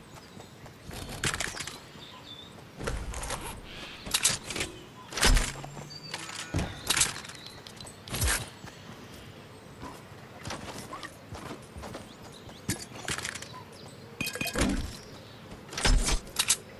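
Short bursts of game sound effects clatter and chime as items are picked up.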